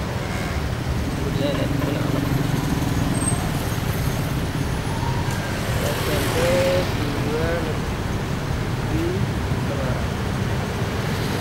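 Traffic rumbles along a city street outdoors.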